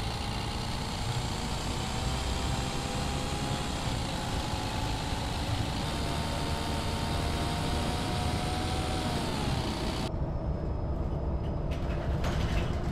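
A bus engine hums steadily with a rising whine as the bus drives along.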